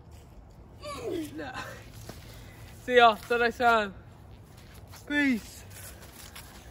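A teenage boy talks close by.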